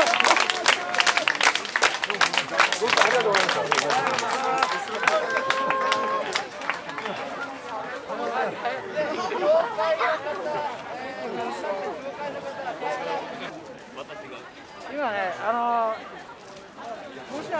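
A crowd of men and women chants and shouts together.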